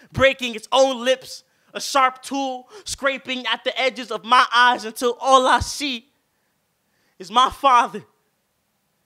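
A young man recites with feeling into a microphone.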